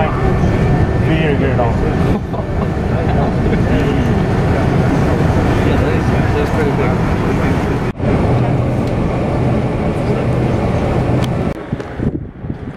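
A train rumbles steadily along a track.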